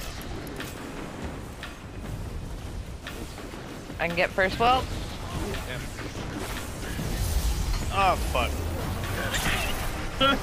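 Gunfire and blasts crackle in a video game.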